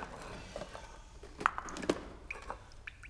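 Porcelain cups clink together.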